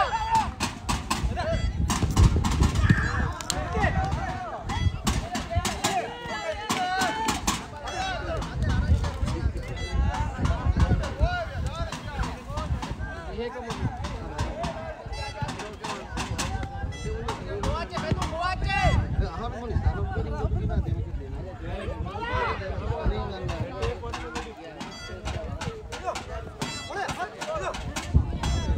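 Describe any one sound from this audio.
Young men shout and call out to each other across an outdoor pitch.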